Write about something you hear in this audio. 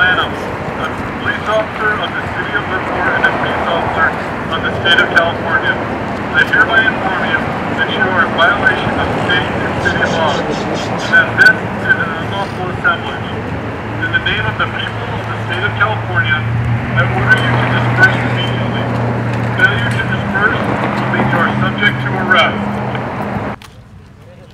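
A man speaks loudly outdoors, close by.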